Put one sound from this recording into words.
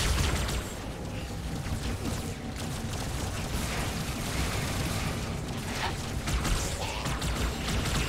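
A low, rumbling hum drones steadily.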